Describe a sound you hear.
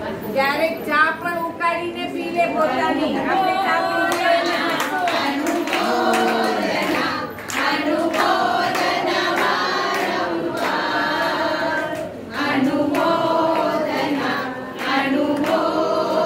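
Elderly and middle-aged women talk quietly close by.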